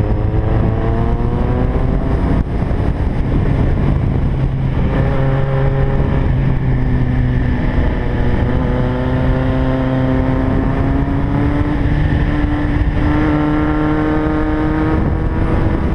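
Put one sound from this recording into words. A motorcycle engine hums steadily, rising and falling in pitch as it changes gear.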